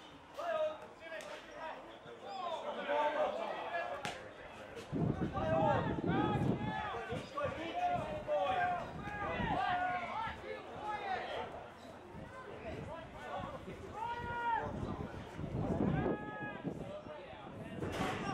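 Young players shout to one another across an open field.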